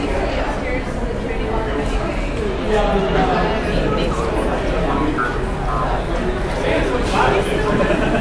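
A man and a child talk casually nearby.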